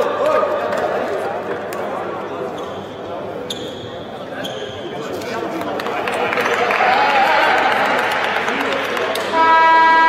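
A ball bounces on a hard floor in a large echoing hall.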